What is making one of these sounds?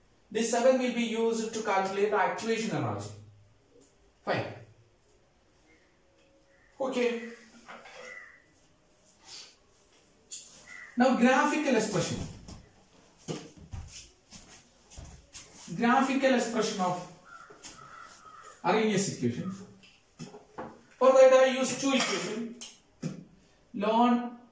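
A man explains calmly and steadily, close by, pausing between phrases.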